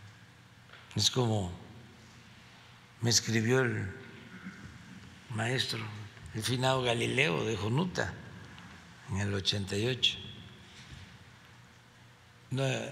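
An elderly man speaks calmly into a microphone in short phrases, with pauses.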